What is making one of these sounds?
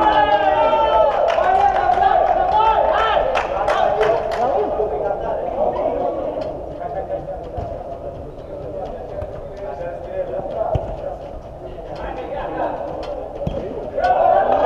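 Men shout and call out to each other across a large echoing dome.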